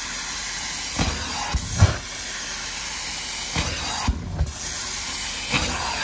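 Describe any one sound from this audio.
A suction tool scrapes over carpet.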